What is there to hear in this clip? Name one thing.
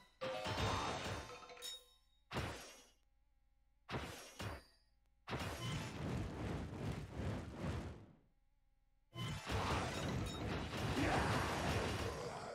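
Magic blasts whoosh and crackle in short bursts.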